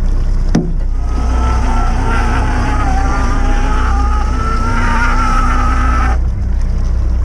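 A hydraulic winch whines as it hauls in a line.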